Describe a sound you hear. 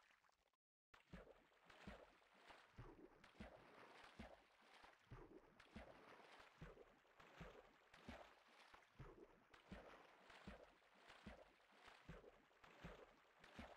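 Water splashes rhythmically as a swimmer paddles.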